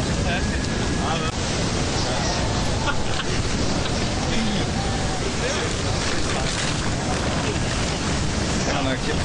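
Waves wash on the sea.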